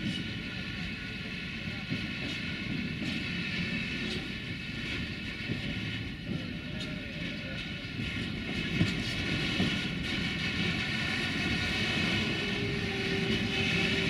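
Train wheels squeal and clatter on the track.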